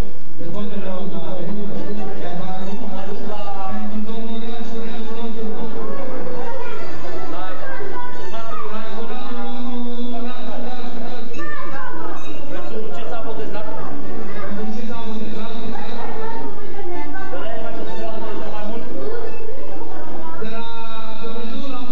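Music plays loudly over loudspeakers in a large hall.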